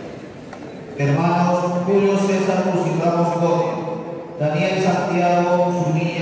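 A group of men sings a slow hymn in unison.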